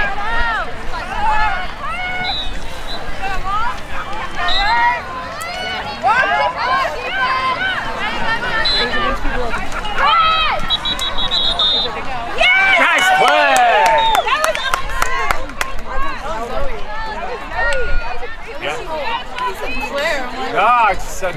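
Young women shout and call to each other across an open field outdoors.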